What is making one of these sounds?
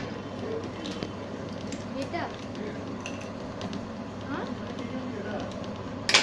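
A chuck key clicks and rattles in a metal lathe chuck.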